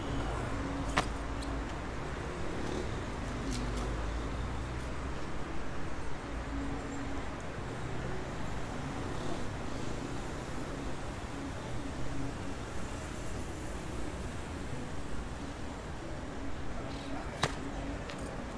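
Hands knock against metal bars.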